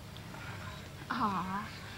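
A young woman speaks briefly and calmly.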